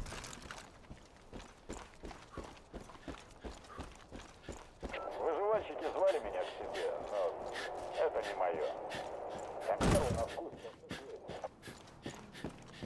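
Footsteps tread steadily on hard ground.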